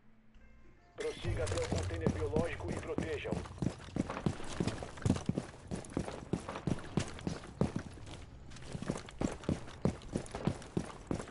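Footsteps thud quickly and regularly on hard ground.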